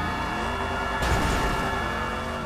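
Two cars crash together with a loud bang.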